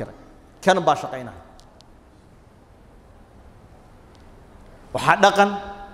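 A man speaks emphatically into a close microphone, pausing between phrases.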